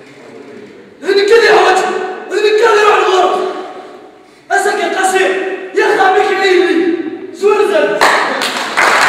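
A young man speaks loudly and with animation in an echoing hall.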